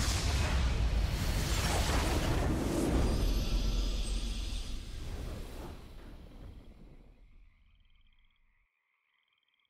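A deep booming blast rumbles loudly and slowly fades away.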